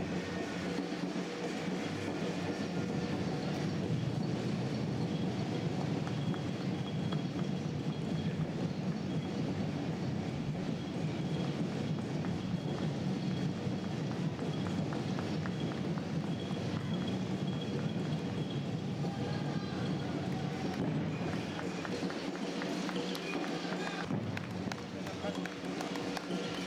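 Runners' shoes patter on the road.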